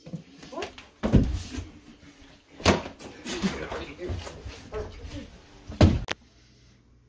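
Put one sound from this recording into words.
Bodies thump and scuffle in a struggle.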